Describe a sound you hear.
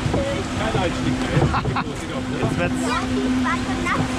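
Water rushes and splashes beneath a log flume boat.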